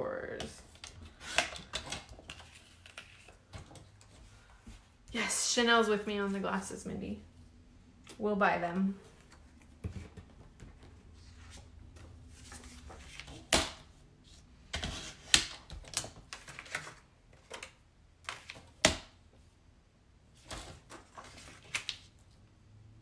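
Sheets of paper rustle as they are moved.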